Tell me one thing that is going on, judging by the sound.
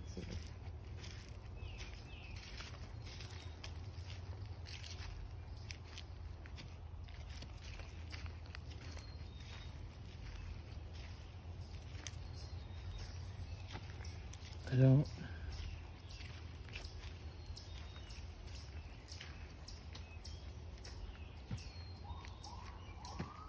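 Footsteps crunch on dry leaves and dirt, outdoors.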